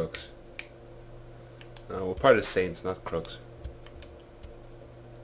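Soft game menu clicks tick as a selection moves through a list.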